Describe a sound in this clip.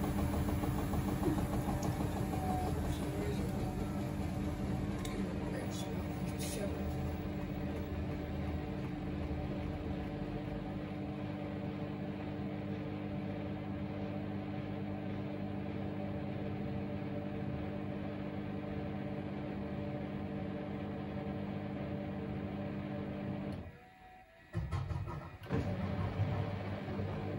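Water and laundry slosh inside a washing machine drum.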